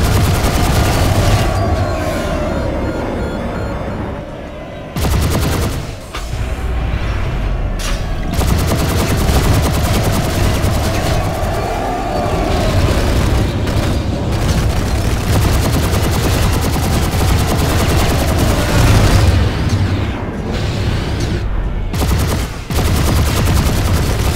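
A jet aircraft engine roars steadily as it flies.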